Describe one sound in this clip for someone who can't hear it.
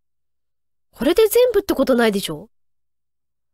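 A young woman speaks briefly and with animation into a microphone.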